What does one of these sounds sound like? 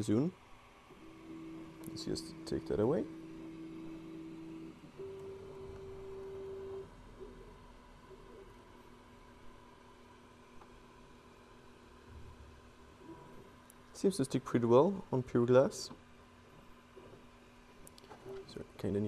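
A 3D printer's motors whine and hum steadily.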